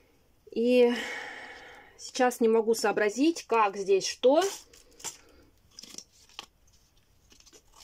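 Cardboard rustles as it is handled.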